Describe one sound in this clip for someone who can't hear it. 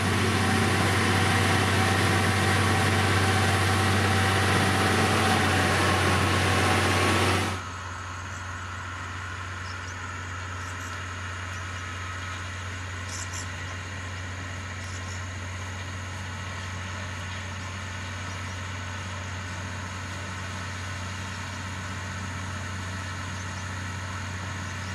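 A diesel engine of a road grader rumbles steadily up close.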